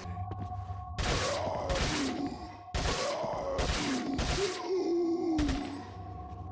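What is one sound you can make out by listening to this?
Gunshots ring out one after another.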